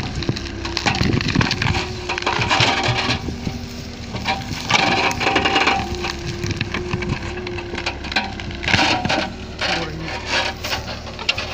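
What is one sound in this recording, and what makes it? A diesel excavator engine hums steadily nearby.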